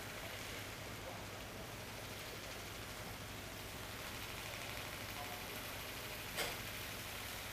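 Water splashes and churns in a pool.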